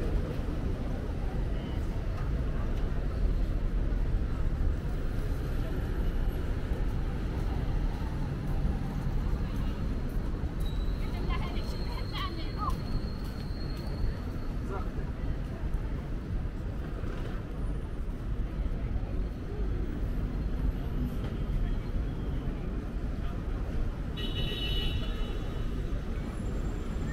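Traffic rumbles steadily along a nearby street.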